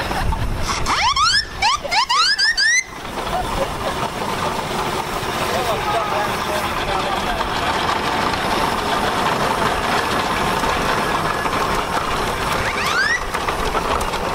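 A steam whistle toots shrilly, rising in pitch.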